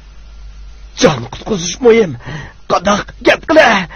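A man speaks tensely and loudly, close by.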